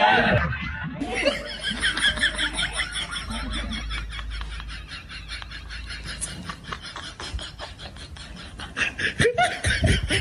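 Adults laugh nearby.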